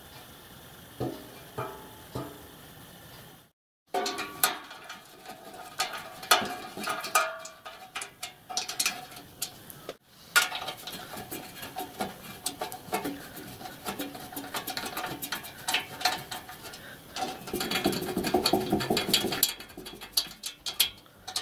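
Thin sheet metal clanks and rattles as hands handle it.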